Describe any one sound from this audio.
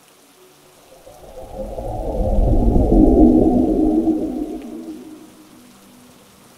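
Thunder rumbles deeply, swelling and then fading away.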